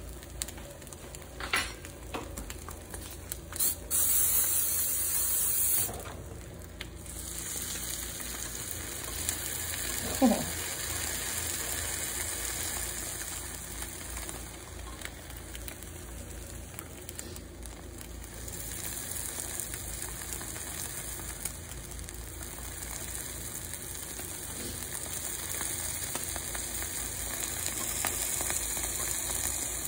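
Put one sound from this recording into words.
Eggs sizzle steadily on a hot grill.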